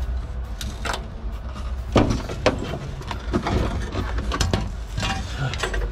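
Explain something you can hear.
A coil spring clanks as it is pulled out.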